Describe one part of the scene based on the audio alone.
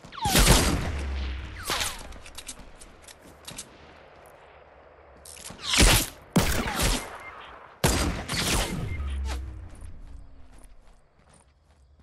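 Sniper rifle shots crack loudly and echo away.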